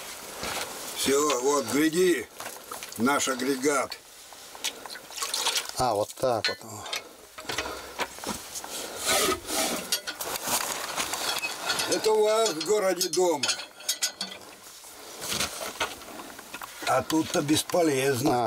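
An elderly man speaks calmly close by.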